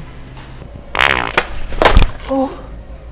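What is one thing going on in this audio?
A man falls and thumps onto a hard floor.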